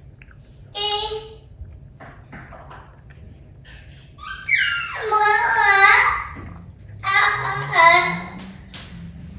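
A toddler squeals and babbles loudly nearby.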